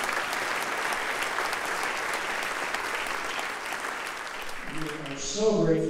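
An audience applauds steadily in a large hall.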